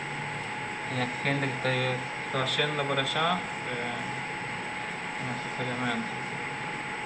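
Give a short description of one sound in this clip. A young man speaks briefly and casually into a nearby microphone.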